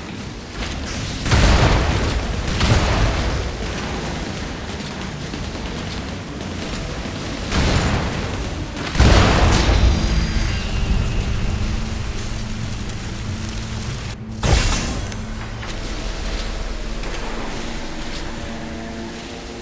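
Water rushes and splashes under a speeding boat.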